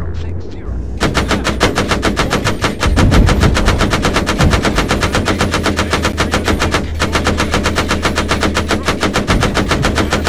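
An automatic cannon fires in fast, steady bursts.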